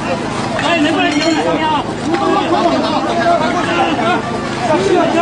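Men call out and talk urgently close by.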